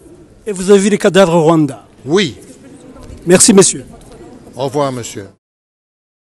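A middle-aged man speaks angrily and close up.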